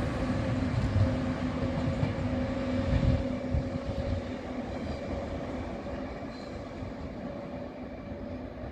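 A train rumbles away along the tracks, slowly fading.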